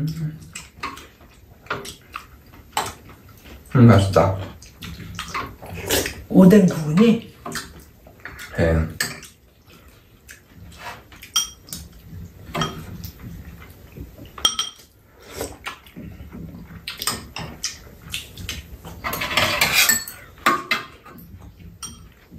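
Metal spoons and chopsticks clink against ceramic bowls.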